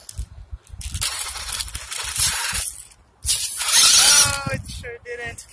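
A small toy car's electric motor whines loudly in bursts.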